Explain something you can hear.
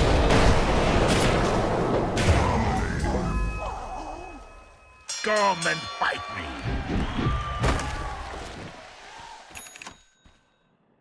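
Video game battle sounds clash and burst loudly.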